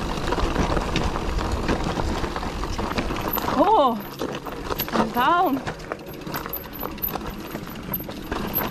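Bicycle tyres rattle and crunch over a rocky trail.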